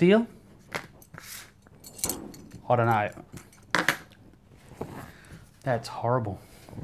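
A man talks calmly close by, in short phrases.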